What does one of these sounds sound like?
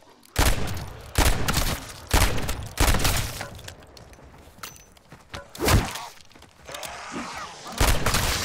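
A pistol fires loud single shots with a booming echo.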